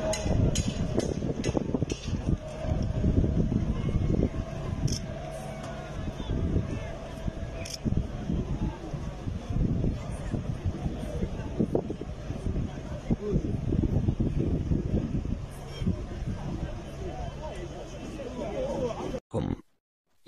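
A large crowd chants and cheers far off outdoors.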